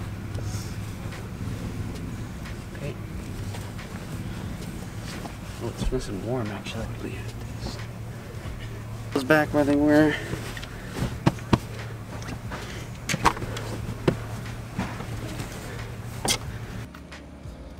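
Bedding rustles and shifts as it is spread out by hand.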